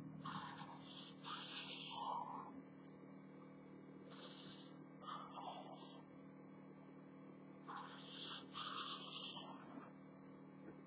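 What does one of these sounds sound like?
A felt-tip marker squeaks and scratches across paper in short bursts.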